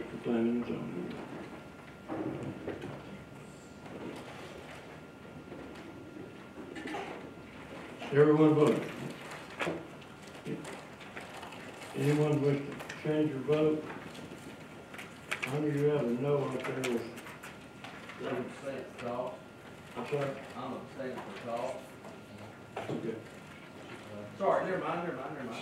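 A man speaks calmly into a microphone in a large room, heard through loudspeakers.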